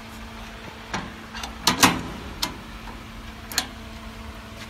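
Metal parts click and clack as a device is latched shut.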